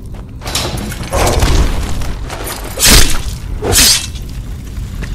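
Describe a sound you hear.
A sword swings through the air with a loud whoosh.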